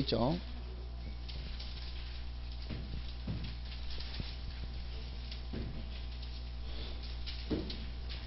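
A felt eraser rubs across a chalkboard.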